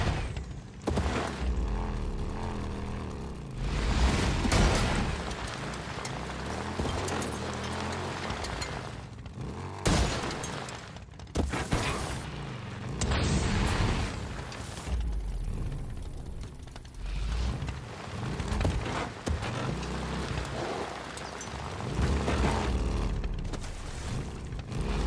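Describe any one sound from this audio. Tyres crunch over gravel and dirt.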